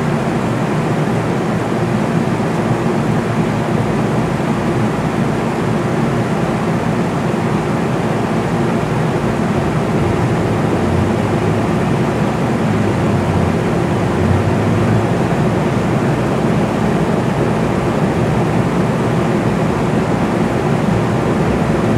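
A vehicle engine rumbles steadily, heard from inside the cabin.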